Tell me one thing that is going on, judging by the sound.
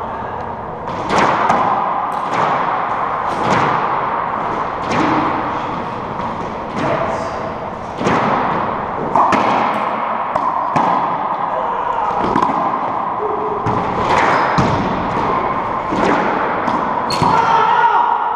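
Racquets strike a ball with sharp cracks.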